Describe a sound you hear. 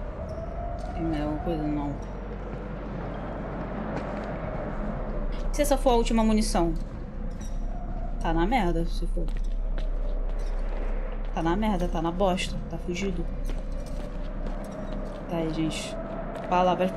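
A young woman speaks calmly and close into a microphone, now and then.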